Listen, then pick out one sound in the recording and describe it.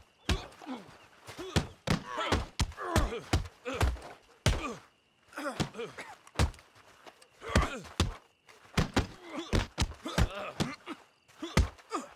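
Heavy punches land with dull thuds in quick succession.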